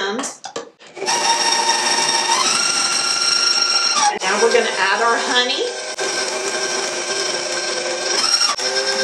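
An electric stand mixer whirs steadily at high speed.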